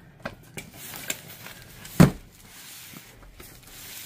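A heavy cardboard box thuds onto a table.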